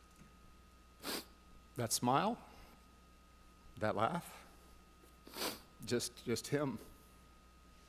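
An older man speaks calmly into a microphone in a room with some echo.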